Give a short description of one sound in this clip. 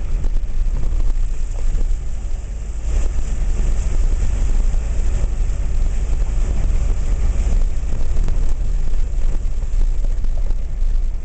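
Waves roll in and crash onto the shore.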